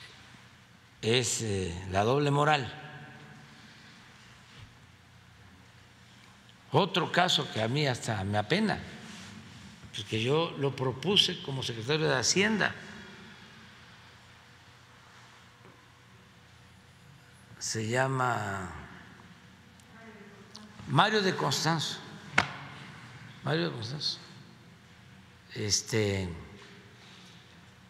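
An elderly man speaks calmly into a microphone, in short bursts with long pauses.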